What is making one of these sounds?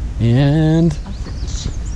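A young woman speaks briefly and brightly nearby.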